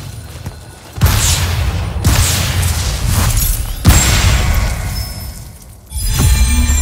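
A weapon fires whooshing blasts.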